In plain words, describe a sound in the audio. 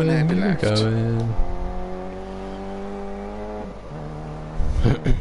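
A young man talks with animation into a microphone close by.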